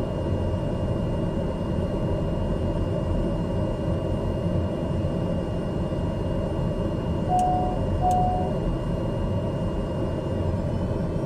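An aircraft engine drones steadily, heard from inside the cabin.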